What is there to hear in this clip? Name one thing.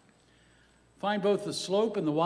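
An elderly man reads out over a microphone.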